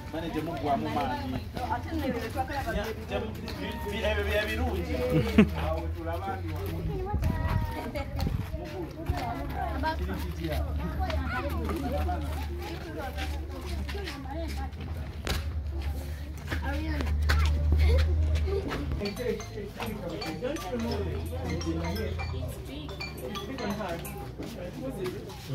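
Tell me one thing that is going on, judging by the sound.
A crowd of children and adults chatter nearby.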